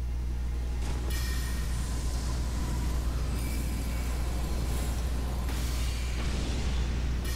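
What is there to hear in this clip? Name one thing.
A magic sword swings with a bright whooshing crackle.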